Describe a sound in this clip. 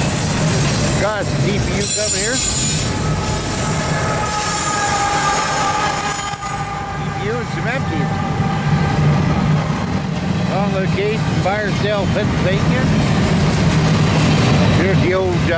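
Train wheels squeal on the rails now and then.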